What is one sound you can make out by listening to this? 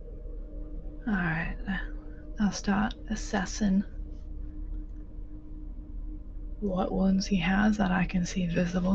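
A woman speaks with animation through a microphone on an online call.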